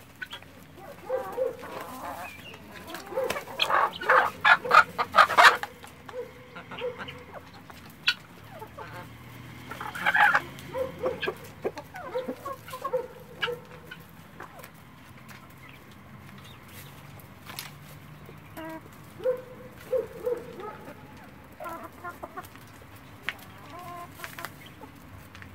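Chickens cluck softly.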